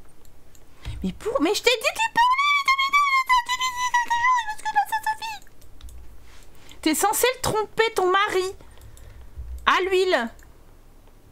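A young woman speaks with animation close to a microphone, in a high, sing-song voice.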